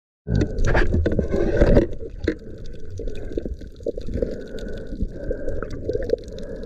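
Water rushes and gurgles around the microphone underwater.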